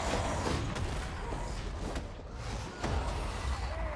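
An explosion booms and flames roar.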